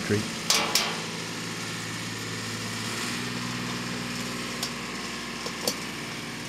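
A metal tool clicks and scrapes near the ground.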